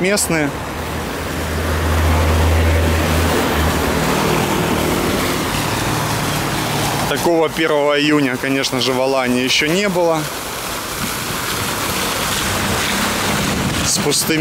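A fountain splashes and gurgles close by.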